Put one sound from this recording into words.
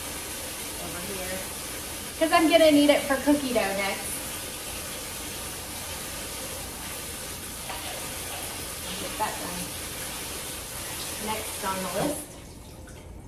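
Water runs from a faucet into a sink.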